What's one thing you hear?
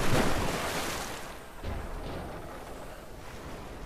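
Water sloshes and laps around a swimmer.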